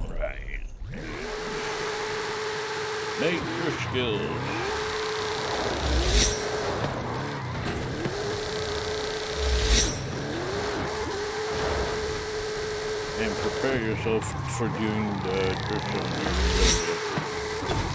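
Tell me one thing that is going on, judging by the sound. A car engine roars steadily and revs up and down.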